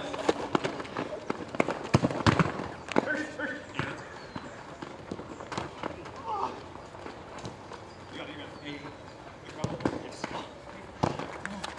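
Sneakers squeak and scuff on the hard court.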